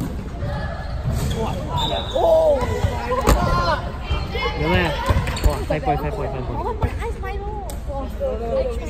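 A volleyball thuds off players' arms.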